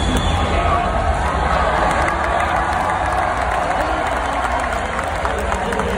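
A large crowd cheers and chatters in a big echoing arena.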